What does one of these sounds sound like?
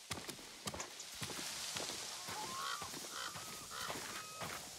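Footsteps crunch on snow and grass.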